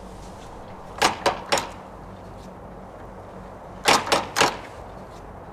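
A hand knocks on a wooden door in short bursts.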